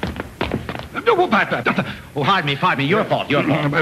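A man speaks loudly and with animation, heard through an old, hissy recording.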